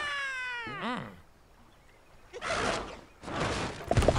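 A small bird whooshes through the air.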